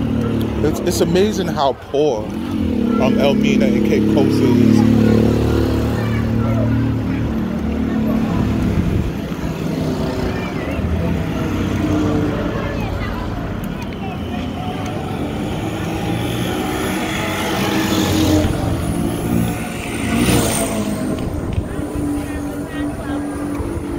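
A small motor engine rumbles steadily close by.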